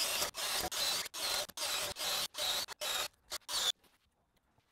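A cordless drill whirs in short bursts, boring through wood.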